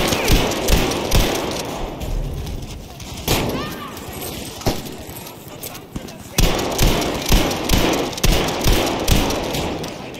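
A pump-action shotgun fires loud blasts.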